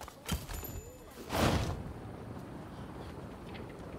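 Wind rushes past a glider in flight.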